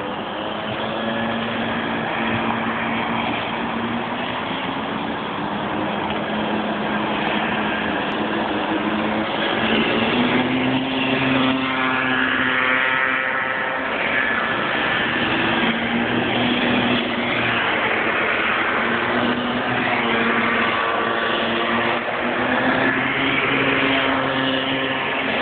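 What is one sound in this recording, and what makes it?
Go-kart engines whine and buzz loudly, rising and falling in pitch as karts race past outdoors.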